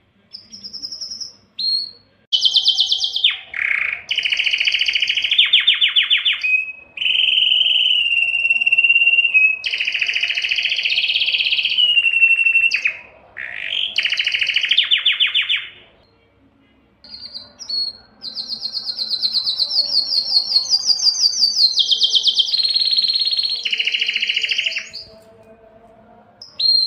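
A canary sings close by in long, loud trills and warbles.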